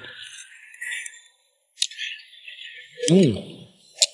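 A young man slurps soup.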